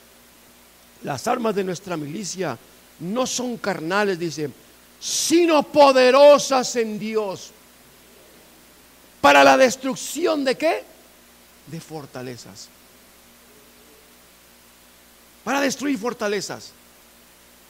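A middle-aged man lectures with animation through a head microphone, pausing between phrases.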